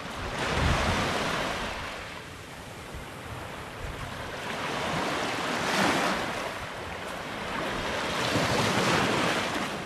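Small waves wash gently onto a sandy shore in surges.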